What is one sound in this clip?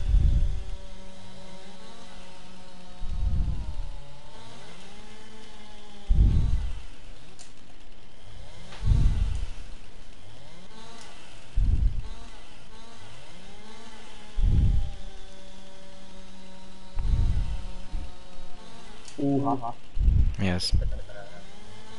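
A chainsaw engine idles steadily.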